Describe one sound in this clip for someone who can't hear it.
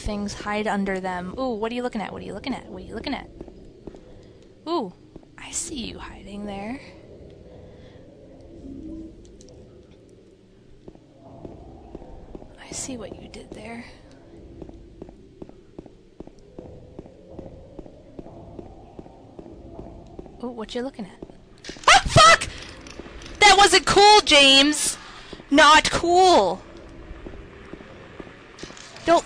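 Footsteps run on hard pavement.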